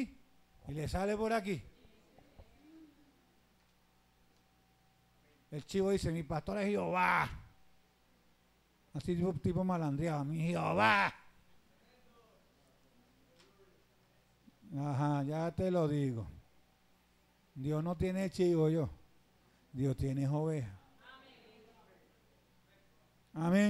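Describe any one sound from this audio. A man preaches through a microphone and loudspeakers in bursts of loud, emphatic phrases, with pauses between them, in an echoing hall.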